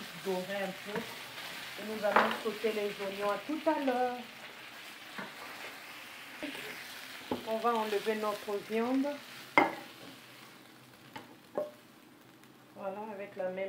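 A wooden spoon scrapes and knocks against a frying pan.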